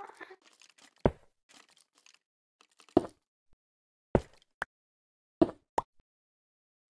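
Blocks break with short crunching thuds as a shovel digs.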